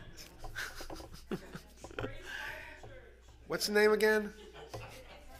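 An older man laughs into a microphone.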